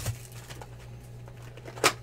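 Plastic wrapping crinkles.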